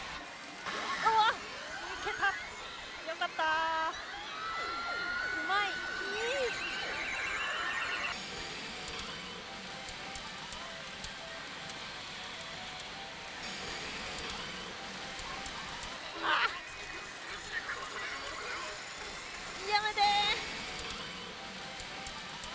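A young woman exclaims close to a microphone.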